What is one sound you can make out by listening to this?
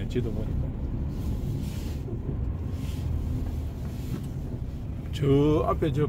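A large vehicle's engine rumbles low and steady as it drives along a road.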